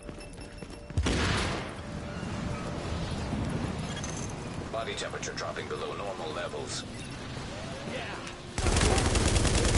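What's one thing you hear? Wind howls in a heavy snowstorm.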